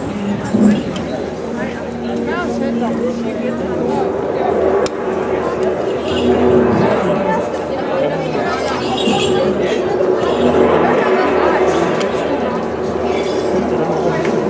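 Pipes play a droning tune.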